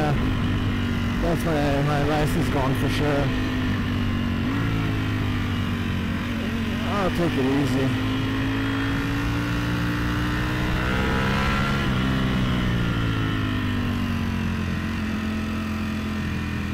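A motorcycle engine hums steadily and rises and falls in pitch as the rider shifts gears.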